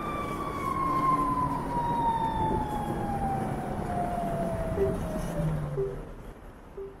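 A motorcycle engine hums and winds down as the bike slows to a stop.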